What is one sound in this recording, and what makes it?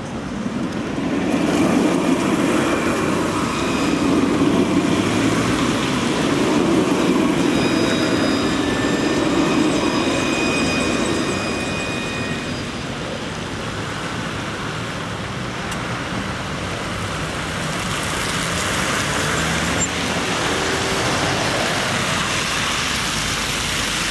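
A tram rolls slowly along the rails with a low rumble.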